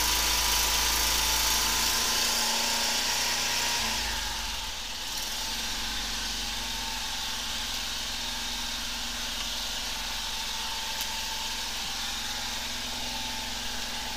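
A high-pressure hose hisses and sprays water into a drain.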